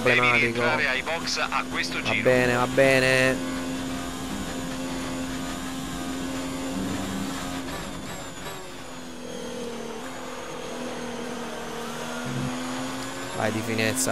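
A racing car engine whines at high revs, dropping in pitch as the car slows for a corner and rising again.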